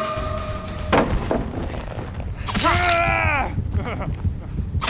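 A blade swings and strikes with a sharp hit.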